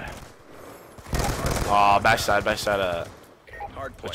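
Rapid gunfire bursts in quick succession.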